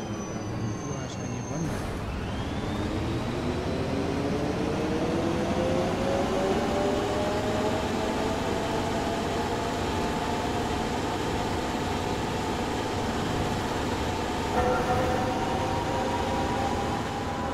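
A bus engine drones and rises in pitch as the bus speeds up.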